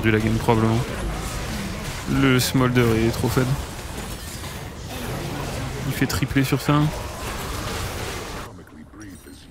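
Game spell effects blast and crackle.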